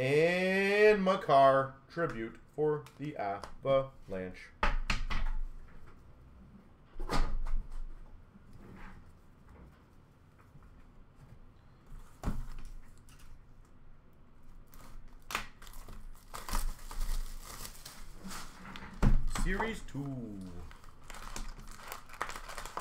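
Card packs rustle and tap as they are handled.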